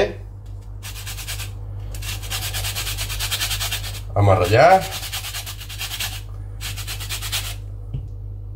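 A whisk scrapes and taps rapidly against a glass bowl.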